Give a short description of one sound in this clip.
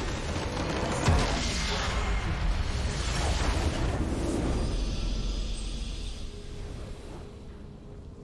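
A loud roaring explosion booms and rumbles, then fades away.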